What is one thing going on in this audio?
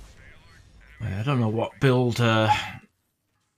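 A man talks loudly and with animation into a close microphone.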